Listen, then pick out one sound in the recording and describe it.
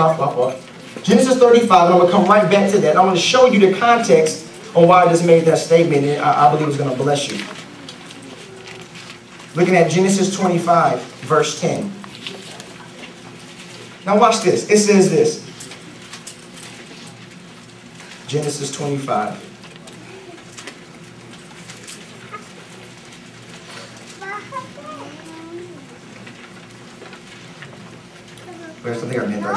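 A man preaches with animation into a microphone, heard through a loudspeaker, pausing between phrases.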